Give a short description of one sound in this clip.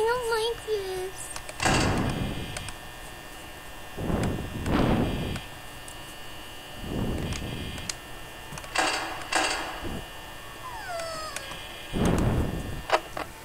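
A desk fan whirs steadily.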